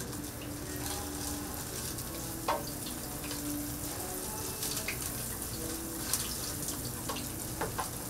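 A metal scraper scrapes across a hot griddle.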